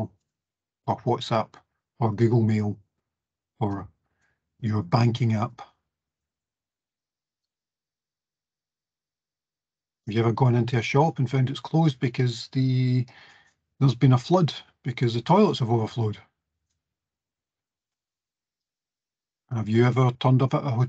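A man speaks calmly through an online call microphone, with pauses.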